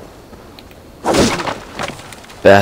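Wooden crates crash and break apart.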